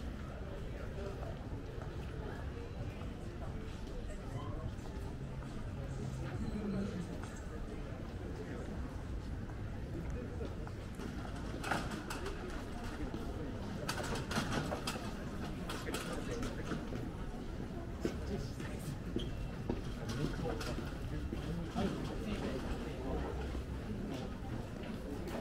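A crowd murmurs along a busy street outdoors.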